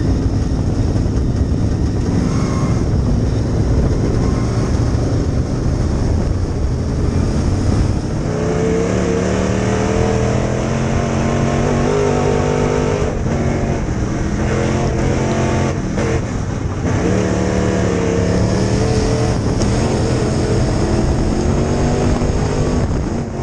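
A dirt late model race car's V8 engine roars at full throttle, heard from inside the cockpit.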